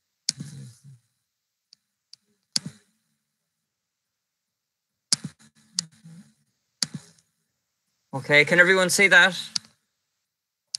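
A middle-aged man speaks in short bursts through an online call.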